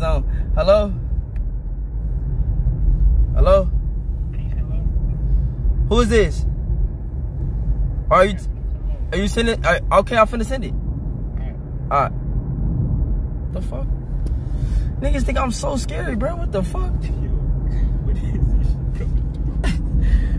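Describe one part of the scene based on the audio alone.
A low engine rumble hums steadily inside a car.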